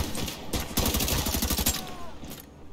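Rapid automatic gunfire rattles in a quick burst.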